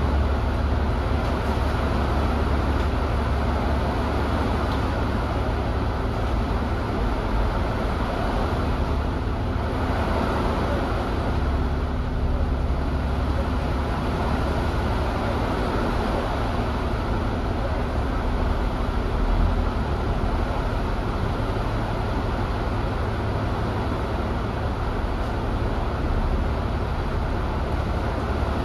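Rain and wind rush steadily outside.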